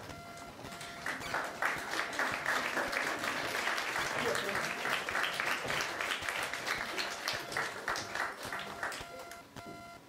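A group of people claps their hands.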